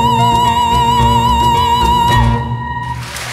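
A woman sings loudly into a microphone.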